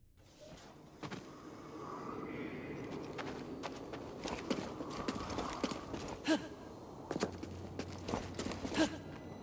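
Footsteps crunch on rock.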